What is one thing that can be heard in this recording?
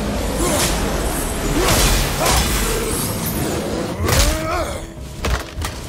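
Blades strike and slash with heavy impacts.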